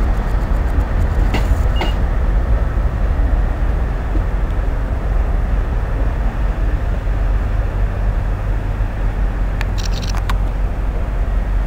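A train rumbles slowly along the tracks nearby.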